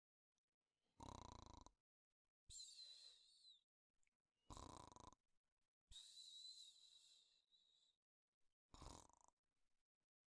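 A man snores softly.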